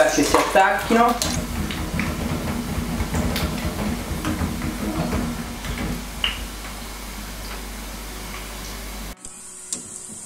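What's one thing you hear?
Hot oil sizzles and bubbles in a pan.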